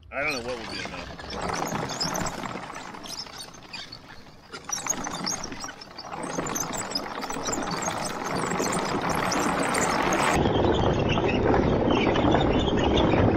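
Wooden tracks clatter and rumble over grass.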